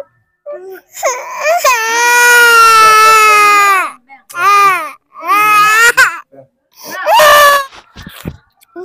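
A toddler girl cries and wails loudly.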